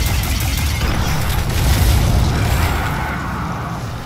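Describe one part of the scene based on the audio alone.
Energy blasts crackle and boom.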